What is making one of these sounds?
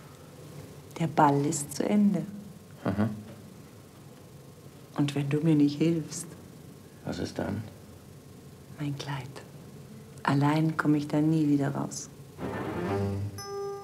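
A woman speaks softly up close.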